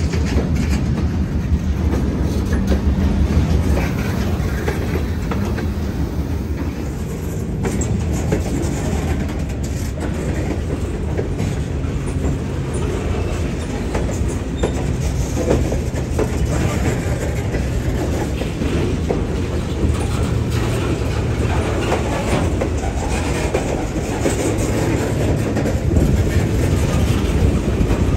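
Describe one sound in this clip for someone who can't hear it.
A long freight train rolls past close by with a steady low rumble.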